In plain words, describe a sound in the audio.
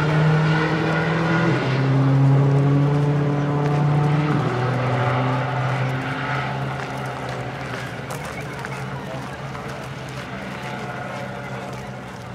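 A helicopter flies overhead, its engine whining and rotor thudding, the sound shifting in pitch and slowly fading.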